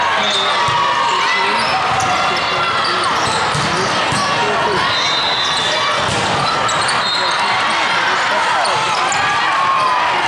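Many voices chatter and call out in a large echoing hall.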